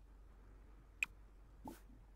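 A short game interface click sounds.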